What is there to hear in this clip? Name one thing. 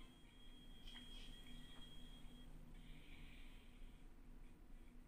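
Short electronic chimes ring out.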